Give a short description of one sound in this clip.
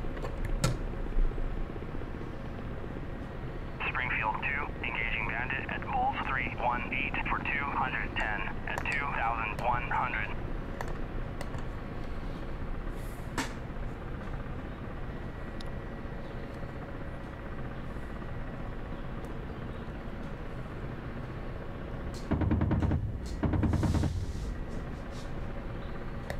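A coaxial attack helicopter's rotors and turbines drone, heard from inside the cockpit.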